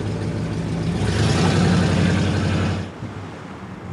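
A car engine roars loudly as another car passes close by.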